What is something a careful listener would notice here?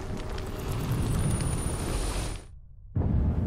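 A bright magical shimmer rings out with a high, steady hum.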